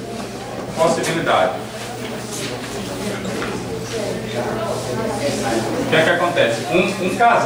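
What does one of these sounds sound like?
A man talks in a room with a slight echo.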